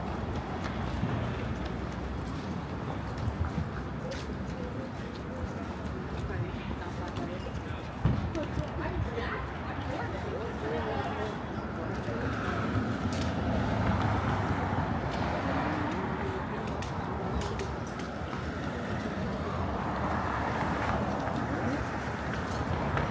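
City traffic hums and rumbles steadily nearby.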